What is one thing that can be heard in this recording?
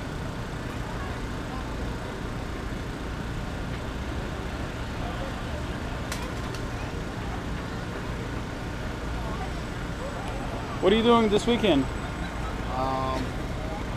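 A crowd murmurs outdoors in a steady hum.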